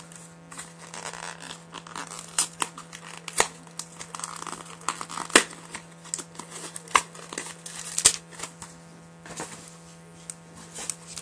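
Plastic packaging crinkles and rustles as a hand handles it.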